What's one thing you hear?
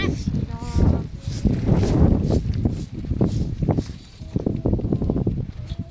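A broom sweeps across a rug on dirt ground.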